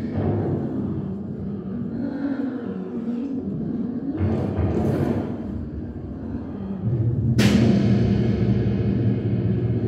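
A drummer plays a drum kit.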